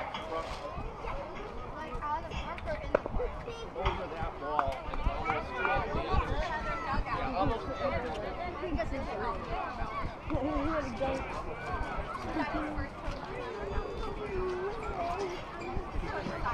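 Children and adults talk and call out nearby, outdoors.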